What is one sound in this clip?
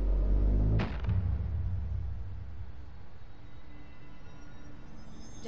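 A low electrical hum drones steadily.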